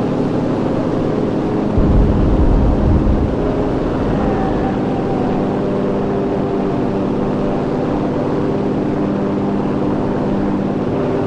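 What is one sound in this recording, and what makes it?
A propeller aircraft engine drones steadily and loudly.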